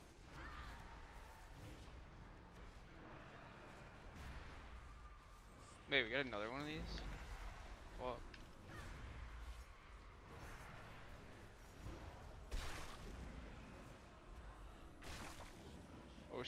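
Game spell effects whoosh and chime.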